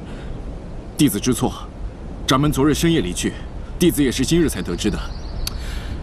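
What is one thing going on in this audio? A young man answers apologetically, close by.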